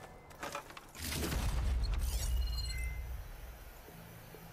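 A deep rumbling whoosh swells and fades.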